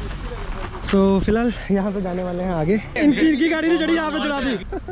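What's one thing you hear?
A young man talks and laughs close by.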